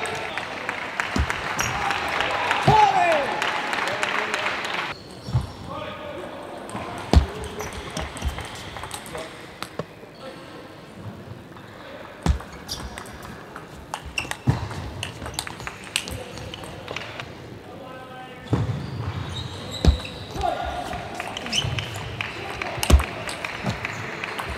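A table tennis ball clicks sharply off paddles and the table.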